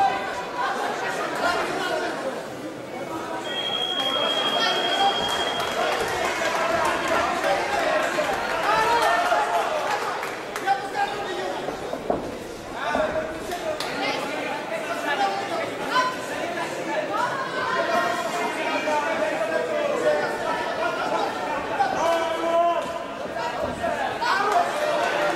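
Punches and kicks thud against bodies and gloves.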